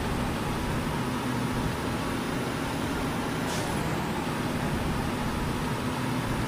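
A simulated semi-truck engine drones as the truck accelerates along a highway.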